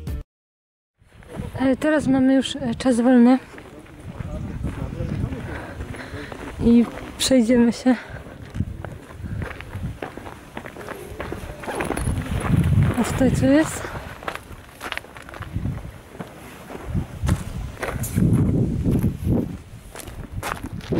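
Footsteps crunch on gravel and stone nearby.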